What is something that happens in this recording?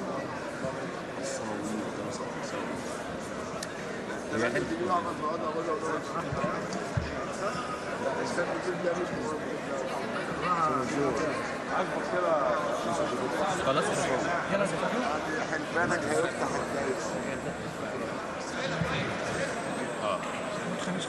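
A large crowd of men and women chatters and murmurs in a big echoing hall.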